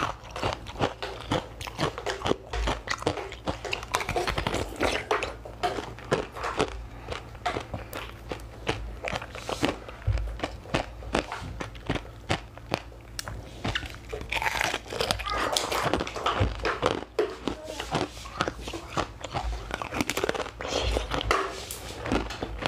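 Ice crunches and cracks loudly between teeth close to a microphone.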